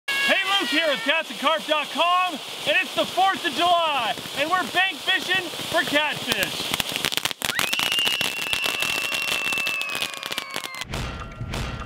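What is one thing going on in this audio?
Fireworks fountains hiss and crackle.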